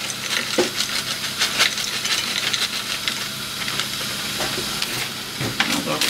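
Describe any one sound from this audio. Frozen diced onions pour and patter into a frying pan.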